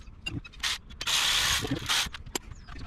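A power tool whirs in short bursts.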